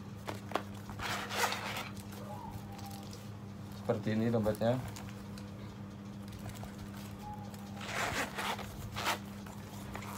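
A leather wallet rustles and scrapes as it is handled.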